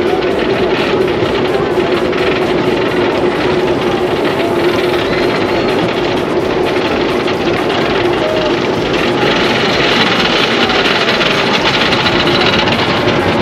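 Wind rushes loudly past the riders.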